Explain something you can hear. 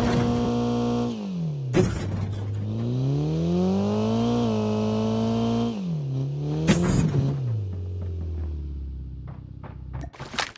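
A car engine hums and revs, rising and falling in pitch as the car drives.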